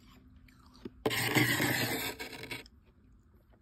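A metal spoon scrapes loudly through crunchy frost.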